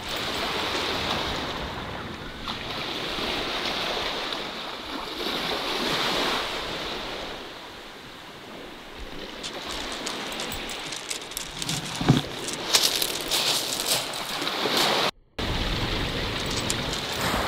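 Small waves wash over pebbles at the water's edge.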